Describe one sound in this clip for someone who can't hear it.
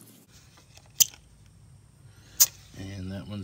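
A pressure gauge clicks sharply.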